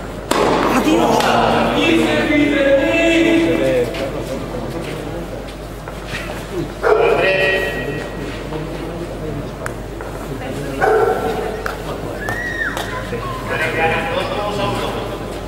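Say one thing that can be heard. A tennis ball is struck back and forth with racket hits echoing.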